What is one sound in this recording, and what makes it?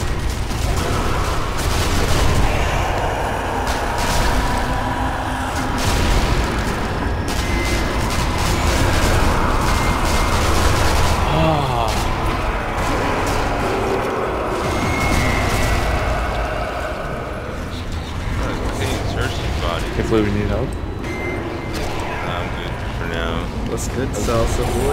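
Gunshots ring out again and again.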